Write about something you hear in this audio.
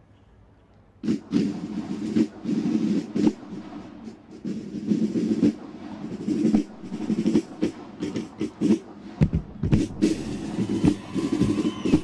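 A drum corps plays loud, rapid snare and bass drum rhythms outdoors.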